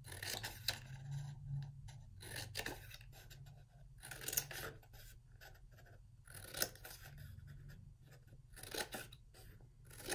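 Scissors snip through paper, again and again.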